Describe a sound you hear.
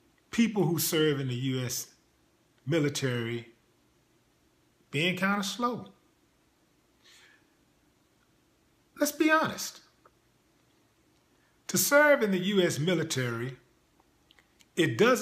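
A man speaks calmly in short phrases, close to the microphone.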